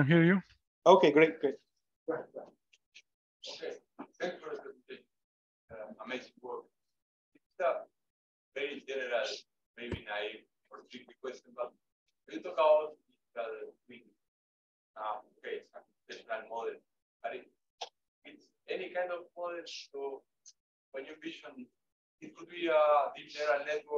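A man speaks calmly through a microphone over an online call, with short pauses.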